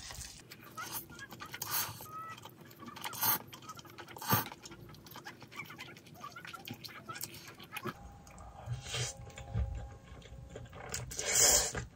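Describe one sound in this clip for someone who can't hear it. A young woman chews noisily, close up.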